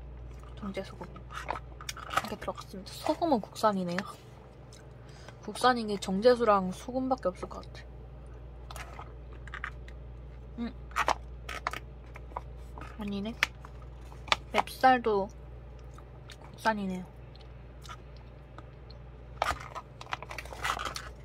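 A plastic pouch crinkles and rustles as it is handled.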